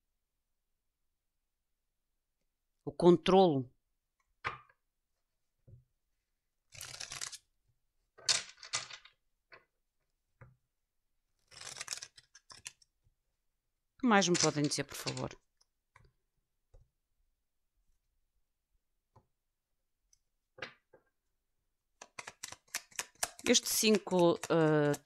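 Playing cards shuffle and riffle in hands.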